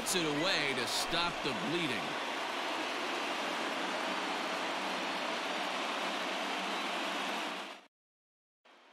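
A large crowd murmurs and cheers in a big echoing stadium.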